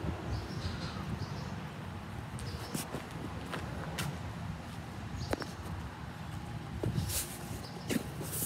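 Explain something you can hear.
A young man talks quietly close by.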